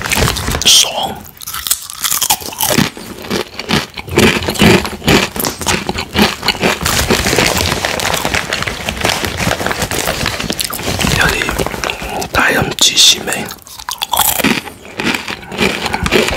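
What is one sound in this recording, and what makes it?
A man crunches on a snack while chewing.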